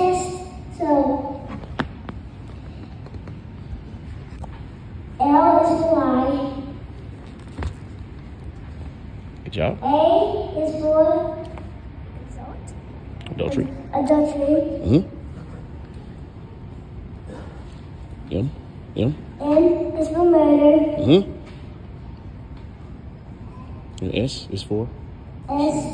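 A young boy speaks into a microphone in short bursts, heard through a loudspeaker in a large echoing hall.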